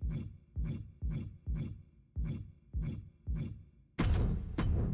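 Short game menu sounds whoosh in a quick, even rhythm.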